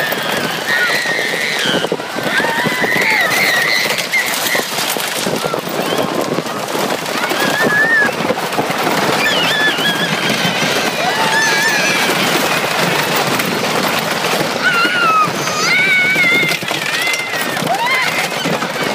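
A young boy screams with excitement close by.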